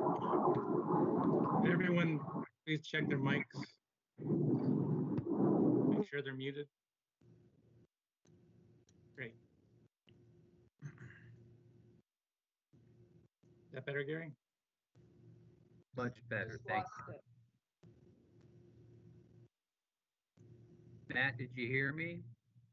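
An adult speaks steadily over an online call, with pauses.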